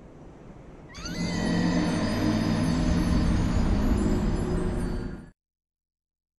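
A low, swelling music cue plays as a game character dies.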